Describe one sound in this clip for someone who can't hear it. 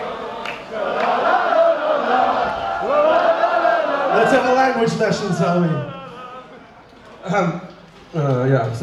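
A man speaks into a microphone over loudspeakers.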